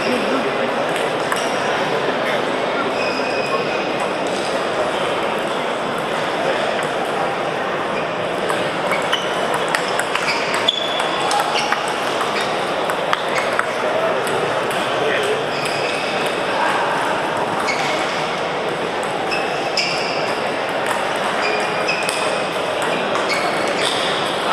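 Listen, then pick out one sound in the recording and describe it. Table tennis balls click sharply off paddles and tables.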